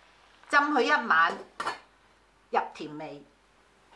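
A glass lid clinks onto a metal pot.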